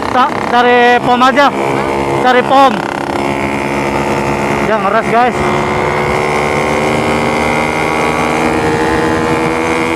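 A motorcycle engine drones steadily, echoing in a tunnel.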